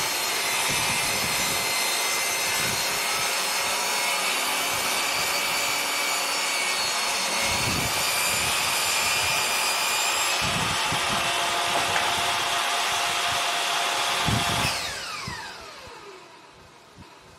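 A circular saw whines loudly as it cuts through wood, then slowly winds down.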